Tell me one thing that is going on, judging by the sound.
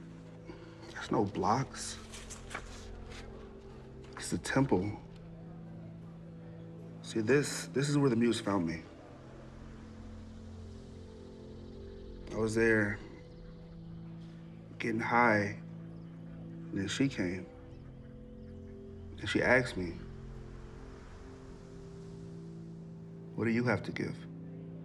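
A young man speaks calmly nearby.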